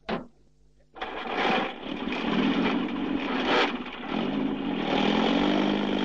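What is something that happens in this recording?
A jeep engine starts and revs loudly.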